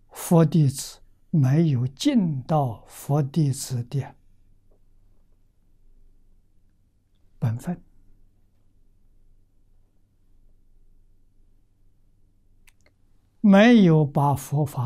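An elderly man speaks calmly and slowly, close to a microphone, with long pauses.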